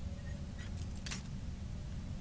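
A lockpick snaps with a sharp metallic crack.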